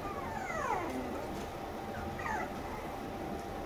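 A small puppy whimpers with short, high falling squeaks.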